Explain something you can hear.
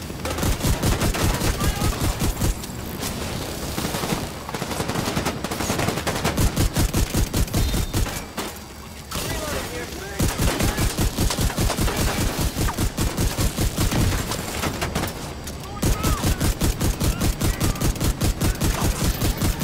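A rifle fires in rapid bursts of gunshots.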